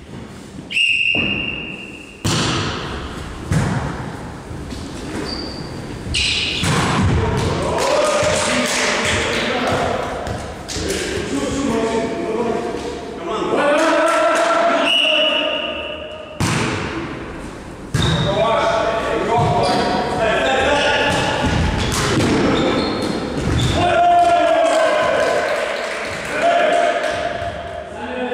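A volleyball is struck with sharp slaps that echo in a large hall.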